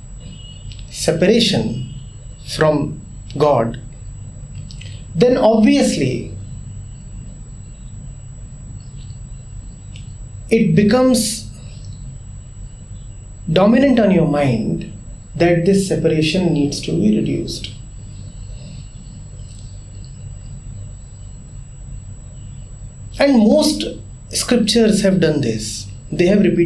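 A man speaks calmly and thoughtfully, with long pauses, close to a microphone.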